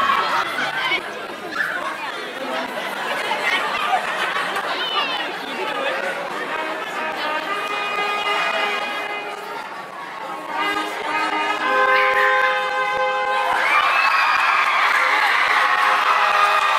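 Music with a steady beat plays over loudspeakers.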